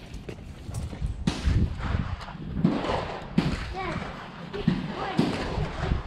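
Metal parts click and clatter as a rifle is handled.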